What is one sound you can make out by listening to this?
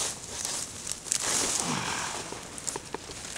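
A root is pulled up from the soil with a tearing rustle.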